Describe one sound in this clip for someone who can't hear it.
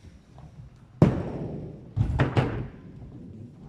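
Pins clatter loudly as a ball crashes into them.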